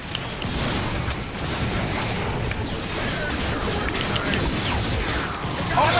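Energy weapons fire in rapid zapping bursts.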